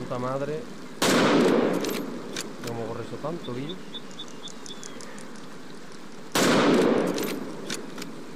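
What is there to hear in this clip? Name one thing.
A rifle fires loud booming shots.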